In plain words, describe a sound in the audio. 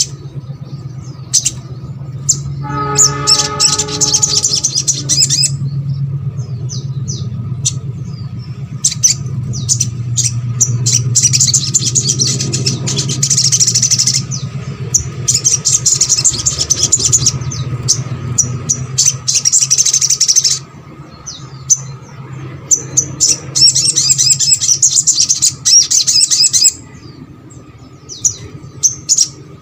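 A small bird sings rapid, high chirping trills close by.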